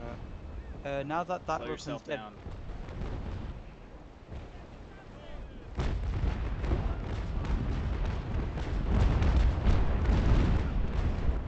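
Waves splash and rush against the hulls of sailing ships.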